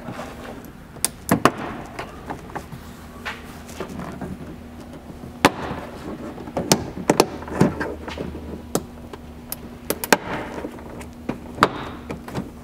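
Plastic trim clips snap and pop loose.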